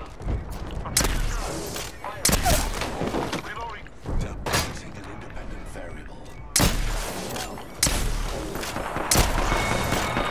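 Gunshots ring out in loud, sharp bursts.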